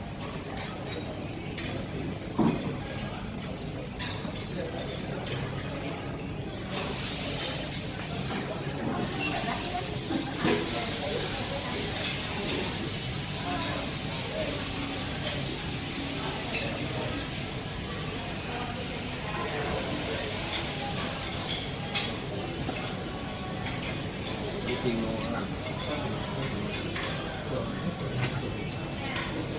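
A robot arm whirs as it moves.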